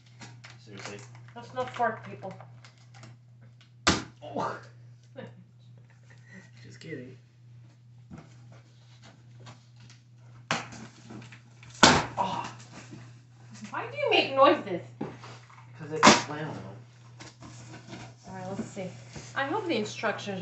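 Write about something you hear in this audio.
Cardboard rustles and thumps as boxes are handled.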